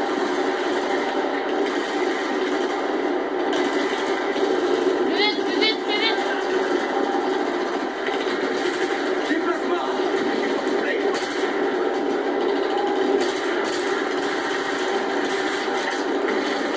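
Explosions boom through a television speaker.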